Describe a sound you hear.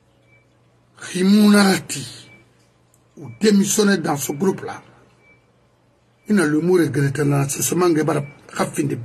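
A middle-aged man speaks with animation, close to a microphone.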